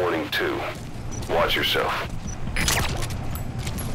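A suppressed gun fires a few muffled shots.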